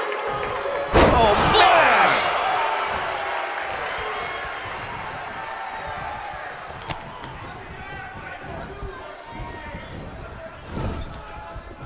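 A heavy body slams onto a wrestling mat with a thud.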